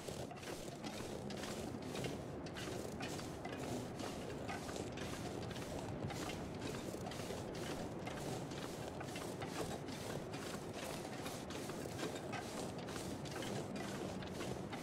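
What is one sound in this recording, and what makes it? Footsteps crunch through snow at a steady walking pace.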